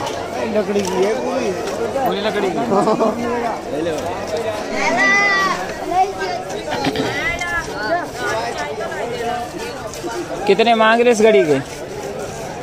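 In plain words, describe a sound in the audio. Men talk and call out in a busy outdoor crowd.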